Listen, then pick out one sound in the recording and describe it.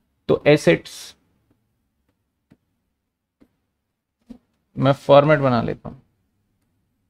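A man speaks calmly into a close microphone, in short phrases.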